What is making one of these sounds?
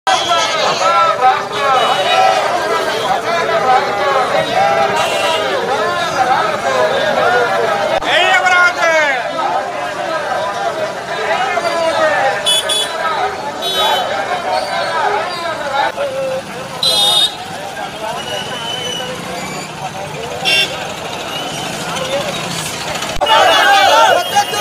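A crowd of men and women chants slogans loudly outdoors.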